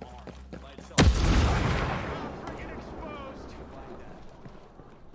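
A loud explosion booms close by, then rumbles and slowly fades.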